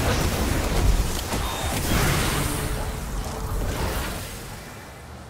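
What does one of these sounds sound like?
A blast of energy roars and crackles loudly.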